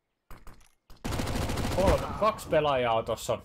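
A submachine gun fires a rapid burst of shots.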